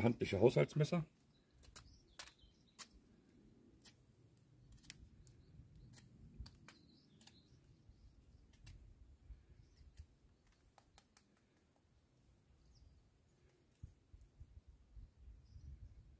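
A knife blade clicks and taps softly as it is turned in the hands.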